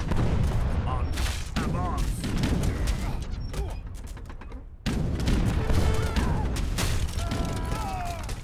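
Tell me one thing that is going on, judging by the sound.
Cannons fire in booming blasts.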